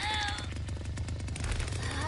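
A chainsaw revs loudly.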